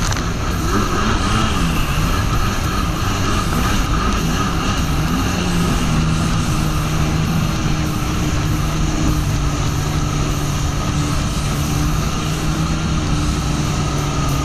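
Wind blows across the microphone.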